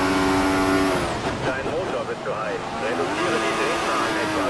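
A racing car engine drops in pitch as the driver brakes and shifts down.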